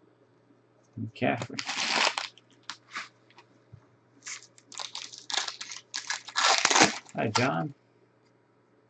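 A plastic wrapper crinkles and tears as a card pack is opened.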